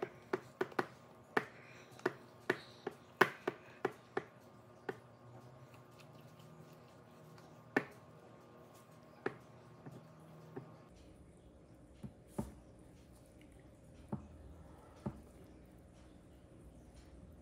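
Thick batter plops softly into a metal pan.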